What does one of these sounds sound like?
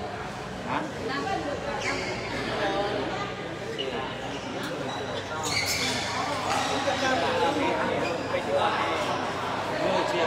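Shuttlecocks are struck sharply with rackets.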